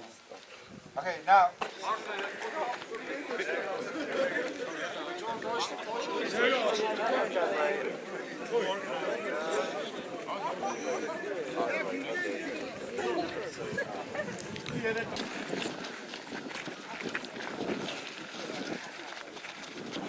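A group of young men shout and count loudly in unison outdoors.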